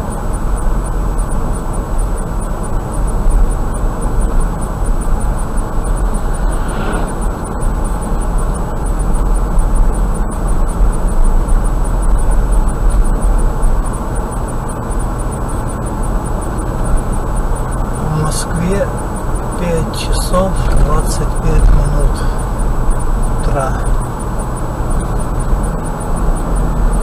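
Tyres hum and rumble steadily on the road from inside a moving car.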